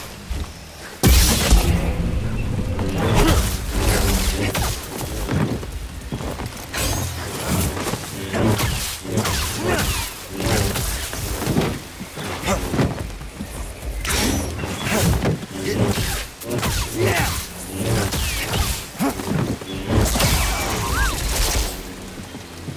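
A giant creature screeches and roars.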